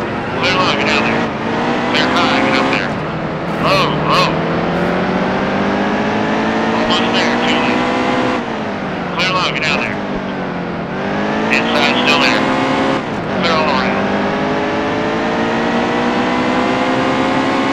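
A race car engine roars, rising and falling in pitch as the car speeds up and slows down.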